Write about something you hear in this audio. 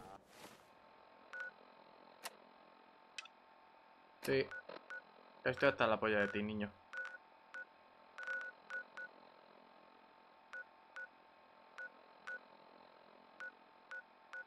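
Short electronic clicks and beeps sound as a menu is browsed.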